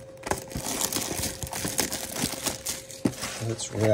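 Plastic wrap crinkles as it is torn off.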